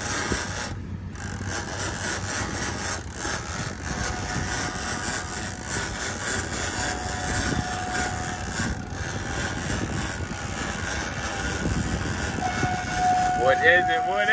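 A fishing reel's drag whines as line pulls out.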